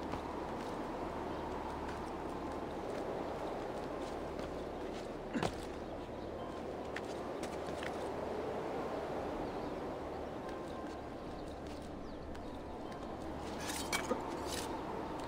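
Hands grab and scrape stone ledges during a climb.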